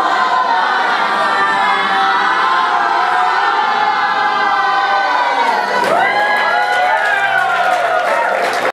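A group of young men and women sing together loudly on stage.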